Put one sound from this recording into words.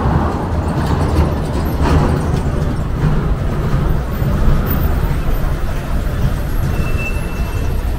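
A bus engine rumbles as the bus drives up the street.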